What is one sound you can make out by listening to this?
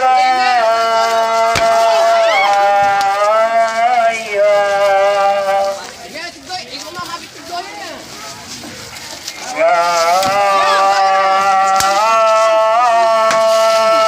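A crowd of onlookers murmurs and calls out nearby.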